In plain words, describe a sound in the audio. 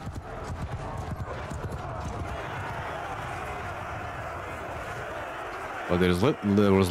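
A large crowd of soldiers cheers and roars.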